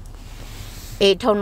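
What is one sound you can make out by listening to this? A woman sobs loudly close by.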